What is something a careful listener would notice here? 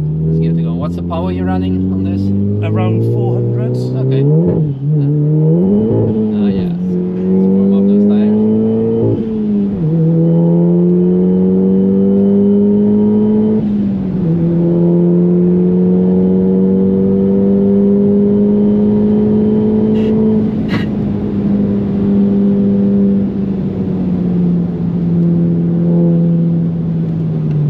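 A car engine roars loudly, revving up through the gears as the car speeds up.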